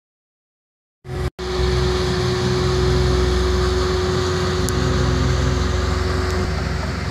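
A road roller's engine rumbles steadily close by.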